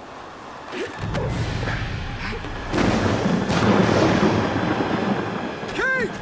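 A strong wind howls and roars outdoors.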